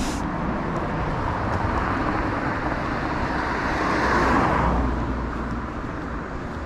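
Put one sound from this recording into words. A car drives past on the road, growing louder and then fading.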